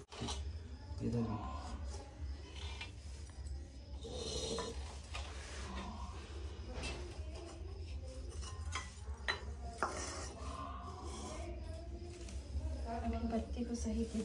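Clay pots clink and knock as they are set down.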